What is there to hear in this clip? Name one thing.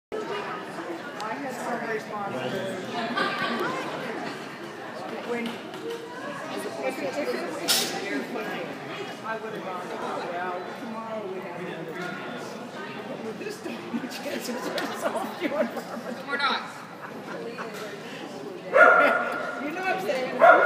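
A man calls out commands to a dog from across a large echoing hall.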